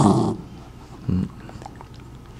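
A small terrier snaps up and chews a treat.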